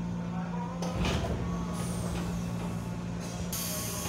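Train doors slide open.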